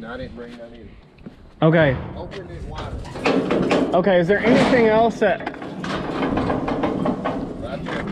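A metal gate rattles and clanks.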